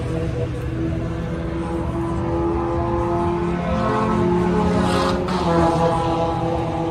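An engine idles steadily nearby, its pitch shifting slightly.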